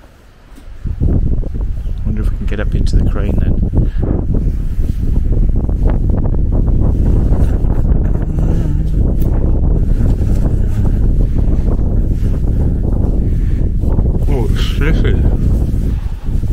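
Wind buffets and roars outdoors.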